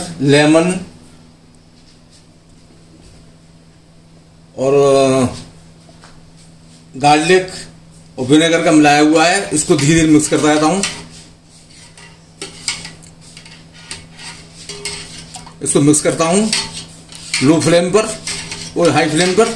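A metal spoon stirs a thick liquid in a steel pot.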